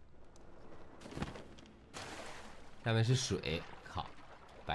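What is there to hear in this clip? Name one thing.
Water splashes as someone swims.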